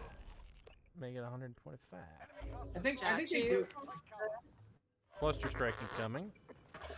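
Men talk with animation into close microphones.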